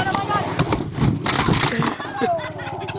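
A skateboard clatters onto a ramp.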